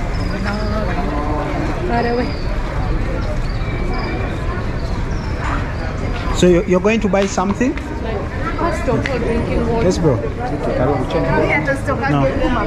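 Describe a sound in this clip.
People chatter and talk nearby on a busy street outdoors.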